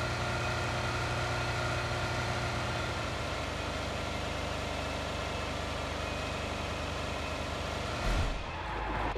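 A car engine hums steadily as the car drives over rough ground.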